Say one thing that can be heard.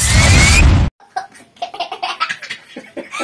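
A young boy laughs loudly.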